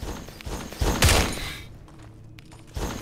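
A fireball bursts with a roaring whoosh.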